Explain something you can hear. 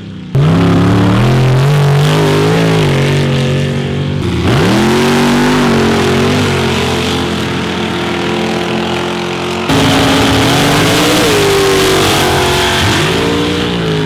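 Dirt sprays and patters from spinning tyres.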